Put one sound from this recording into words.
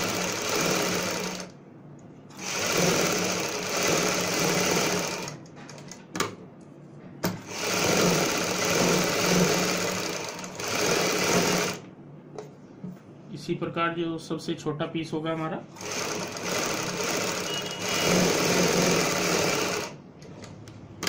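A sewing machine runs in bursts, whirring fast and steadily.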